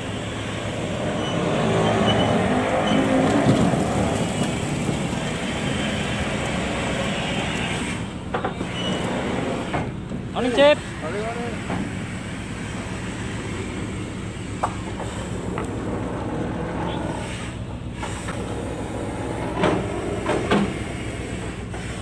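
Fish slither and thud as a net load is lowered into a hold.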